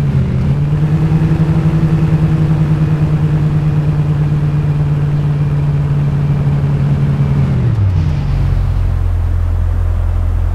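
A car engine hums steadily, then drops lower as it slows.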